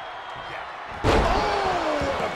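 A wrestler slams down onto a wrestling ring mat with a heavy thud.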